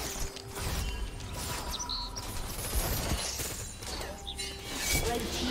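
Game effects whoosh and crackle as a character casts spells.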